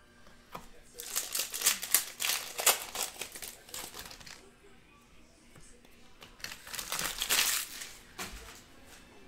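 A foil wrapper crinkles loudly as it is torn open and handled.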